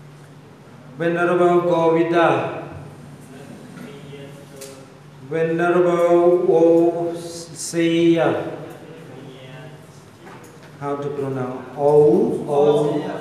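An elderly man speaks slowly into a microphone, heard through a loudspeaker, in short bursts with pauses.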